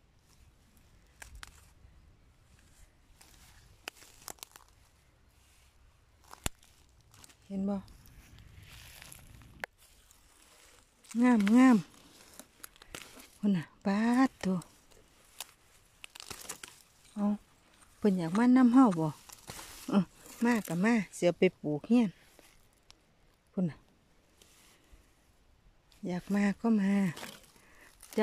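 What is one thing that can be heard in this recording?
Leafy plants rustle as they are handled and picked.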